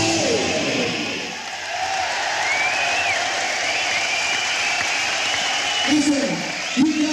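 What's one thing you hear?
A rock band plays loud electric music.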